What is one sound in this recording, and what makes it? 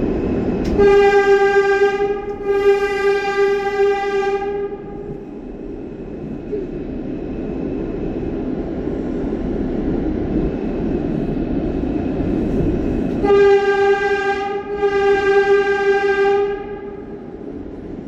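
A train horn sounds in two long, paired blasts.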